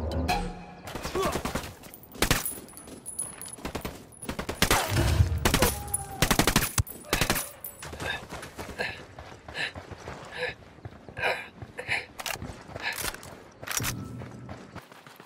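Gunshots crack sharply in bursts.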